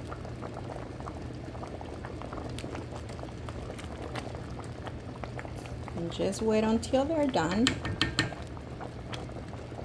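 A thick stew simmers and bubbles softly in a pot.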